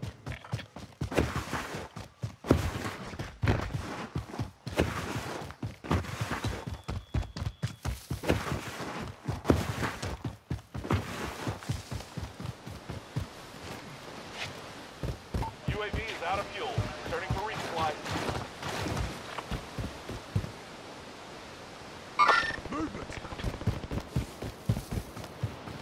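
Footsteps crunch quickly over ground.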